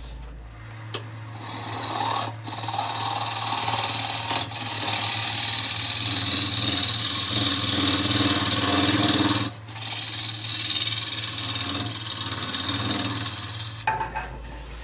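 A gouge scrapes and hisses against wood spinning on a lathe.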